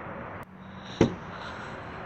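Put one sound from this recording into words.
A car door shuts with a single thud.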